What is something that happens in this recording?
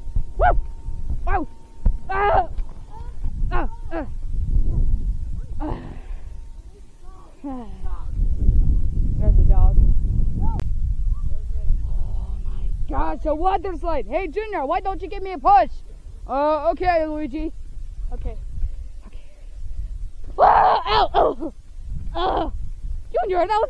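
A child talks excitedly close by.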